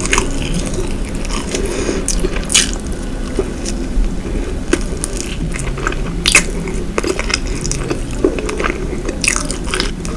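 A woman chews crisp pastry with moist, crunchy sounds close to a microphone.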